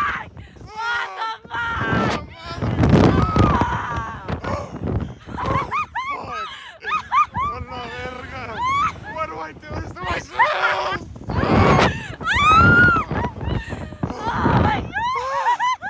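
A young woman laughs and shrieks up close.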